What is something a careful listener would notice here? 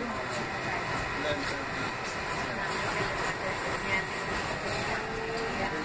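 A subway train rumbles and rattles along the tracks.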